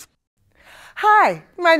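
A woman calls out loudly and cheerfully nearby.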